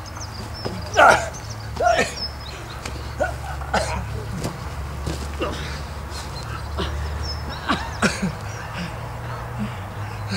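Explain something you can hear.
Bodies thud onto the ground.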